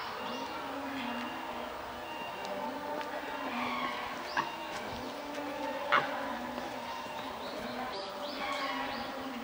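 Monkeys call with short, high squeaky cries, over and over.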